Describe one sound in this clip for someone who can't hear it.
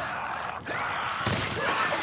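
A creature snarls and growls nearby.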